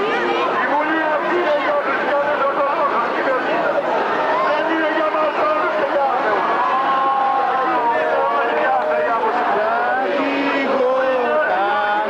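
A large outdoor crowd murmurs and chatters with many voices.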